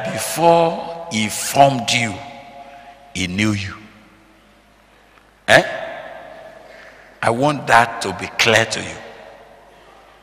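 An older man preaches forcefully into a microphone.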